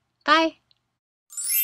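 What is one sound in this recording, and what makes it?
A young woman speaks a short phrase cheerfully, close to the microphone.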